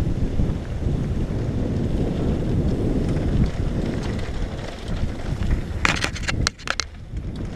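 Wind rushes loudly past a rider's helmet.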